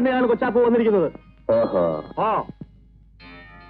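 A man speaks loudly.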